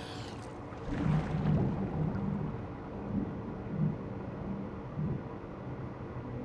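Muffled underwater swishing and thumps come as someone swims.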